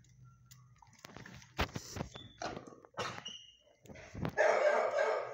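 A dog's nose bumps and scrapes against a glass door.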